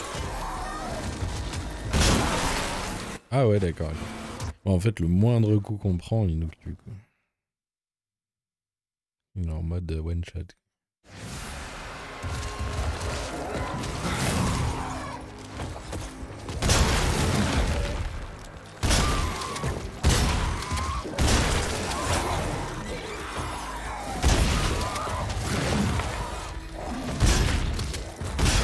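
A monster growls and snarls close by.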